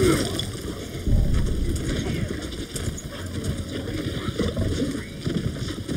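Footsteps run across grass.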